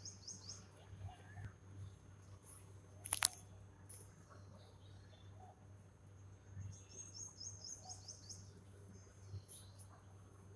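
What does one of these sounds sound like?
A peacock rattles its fanned tail feathers with a soft rustling shiver.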